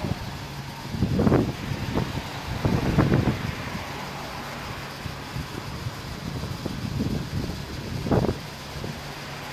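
A fuel pump hums as fuel flows into a car.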